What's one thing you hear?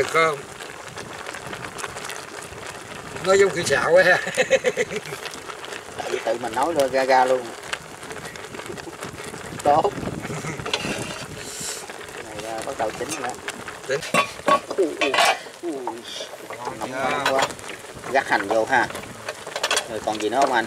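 Water bubbles at a boil in a pot.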